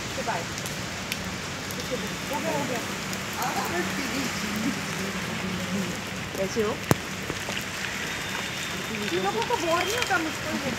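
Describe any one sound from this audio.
Footsteps patter on wet pavement.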